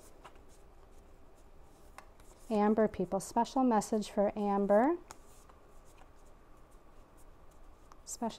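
Playing cards shuffle softly in a person's hands.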